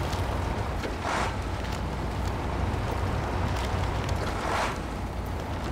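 Branches scrape and swish against a truck's body.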